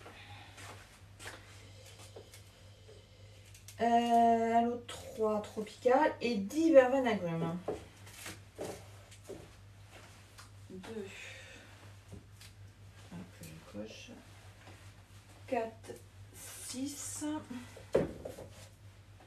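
Small boxes rustle and tap as a woman handles them.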